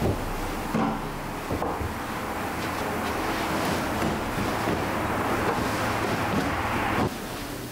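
Cushions rustle and thump softly as they are plumped and set down.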